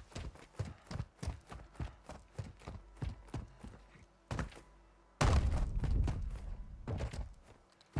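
Footsteps run quickly over dirt and gravel.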